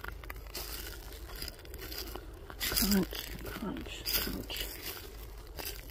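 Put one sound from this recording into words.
Footsteps crunch and rustle on a leafy forest trail.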